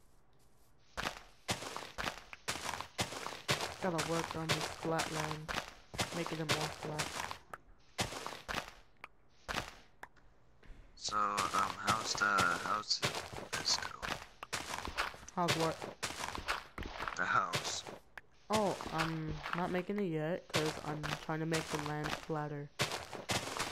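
Dirt crunches in quick, repeated thuds as it is dug.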